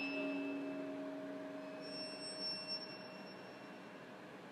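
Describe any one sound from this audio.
A young woman hums a low steady note close to the microphone.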